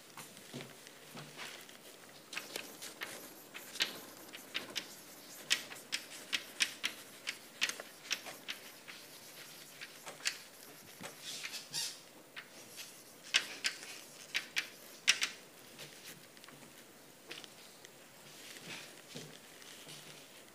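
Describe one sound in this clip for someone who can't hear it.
A young woman speaks calmly in a large echoing room.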